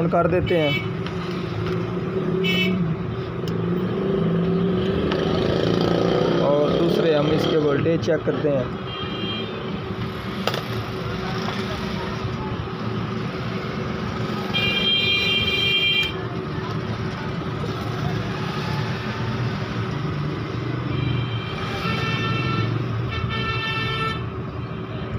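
A multimeter beeps in short bursts.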